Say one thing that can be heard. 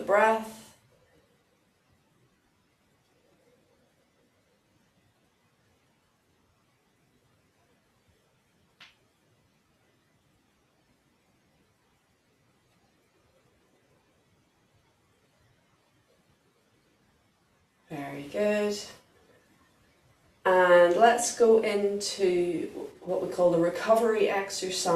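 A woman speaks calmly and clearly, as if giving instructions.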